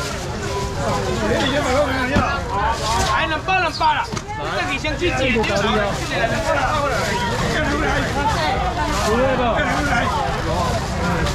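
A young man calls out loudly nearby.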